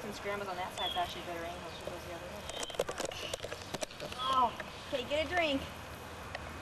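An adult speaks gently nearby.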